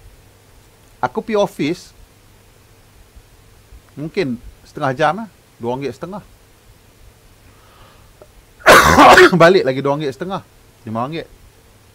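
A man talks into a microphone in short bursts, with pauses.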